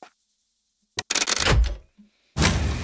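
A heavy switch clunks into place.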